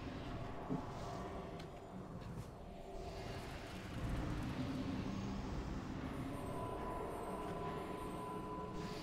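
Spell effects whoosh and hum from a game.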